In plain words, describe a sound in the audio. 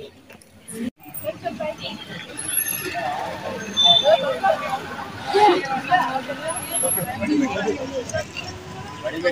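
A crowd of men and women chatters nearby, outdoors.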